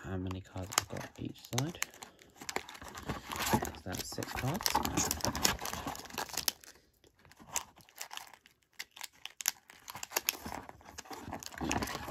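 Foil card packs crinkle and rustle.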